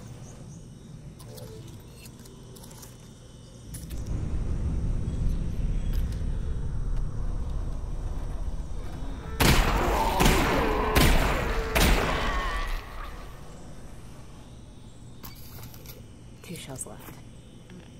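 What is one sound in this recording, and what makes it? Metal clicks and clacks as a gun is reloaded.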